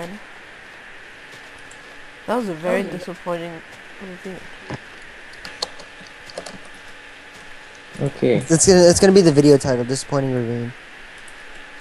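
A shovel digs into dirt with short crunching thuds.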